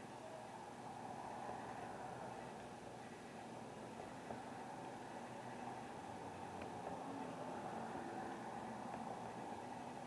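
Cars drive past on a wet road.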